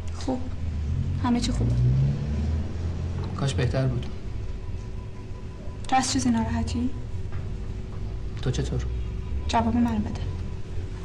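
A young woman answers softly nearby.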